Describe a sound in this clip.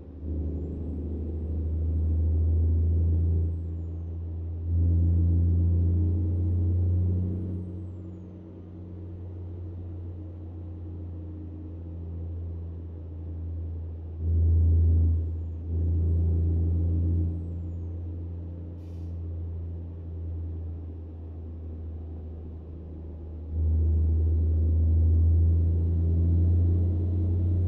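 A truck engine hums steadily and surges louder at times.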